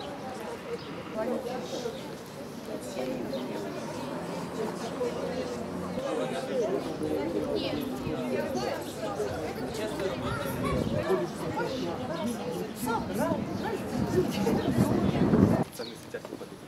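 A crowd of women and men talk and chant outdoors.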